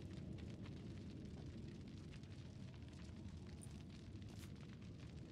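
A young woman talks casually into a close microphone.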